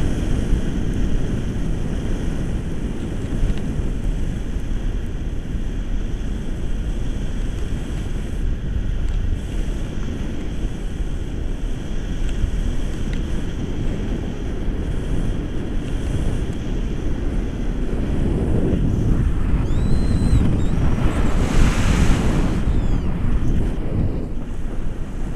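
Strong wind roars steadily past a microphone outdoors.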